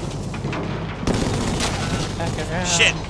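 A large explosion booms.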